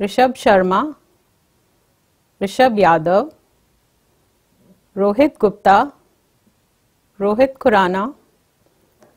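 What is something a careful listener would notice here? A young woman reads out names one at a time through a microphone, with short pauses between them.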